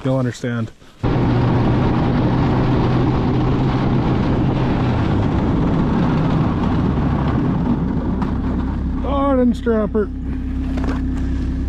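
A snowmobile engine idles with a steady rumble.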